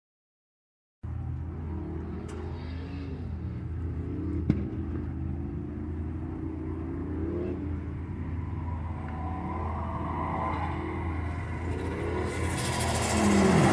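Racing car engines roar and whine in the distance, growing louder as a car approaches.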